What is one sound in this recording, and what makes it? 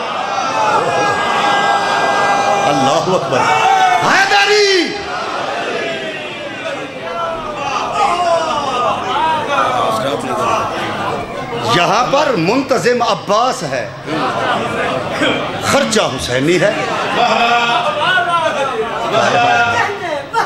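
A man recites loudly and passionately into a microphone, heard through loudspeakers.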